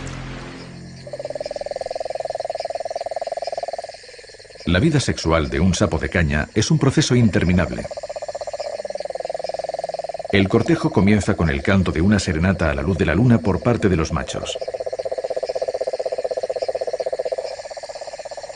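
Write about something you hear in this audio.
A toad calls with a long, steady, buzzing trill.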